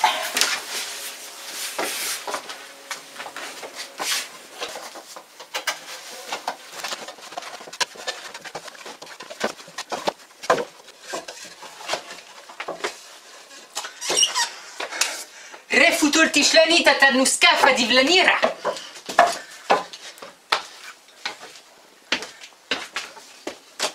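Footsteps thump and shuffle on a wooden floor.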